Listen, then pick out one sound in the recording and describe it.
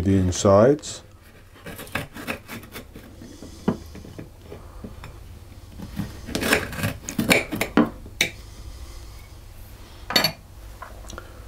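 A knife taps and scrapes against a chocolate shell.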